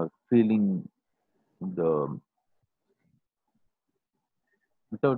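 A middle-aged man speaks in short, calm phrases close to a microphone.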